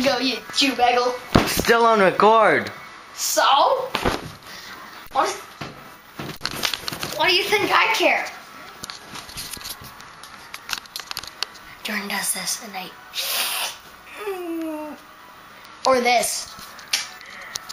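A young boy talks excitedly close to the microphone.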